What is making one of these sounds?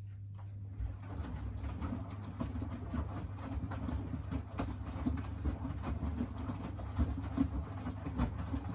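Wet laundry sloshes and thumps inside a turning drum.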